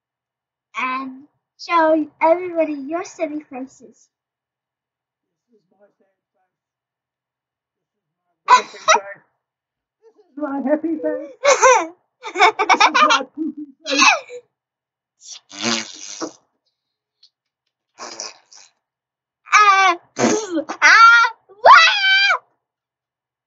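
An older woman talks and laughs close by.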